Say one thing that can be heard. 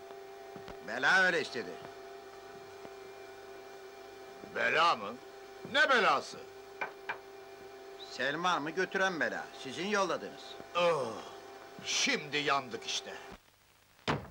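Middle-aged men talk tensely in turn, close by.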